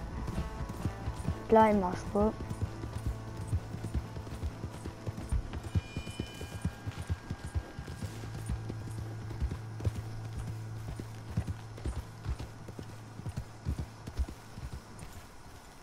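A horse gallops, its hooves pounding on the ground.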